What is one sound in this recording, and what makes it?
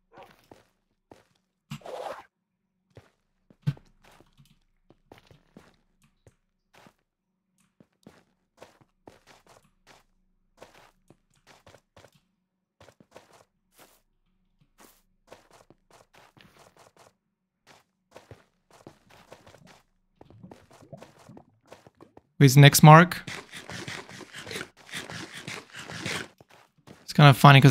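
Footsteps crunch steadily on hard ground.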